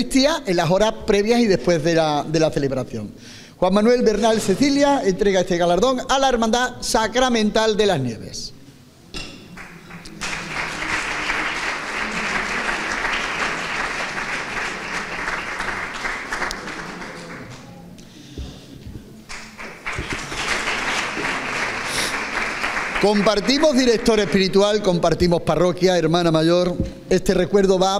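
A middle-aged man speaks calmly into a microphone in an echoing room.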